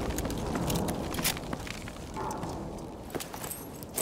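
Flames crackle and pop nearby.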